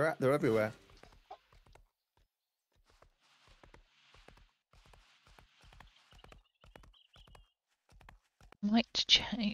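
A horse's hooves thud steadily as it trots over rough ground.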